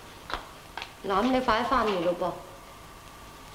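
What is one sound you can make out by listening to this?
A young woman speaks briefly nearby.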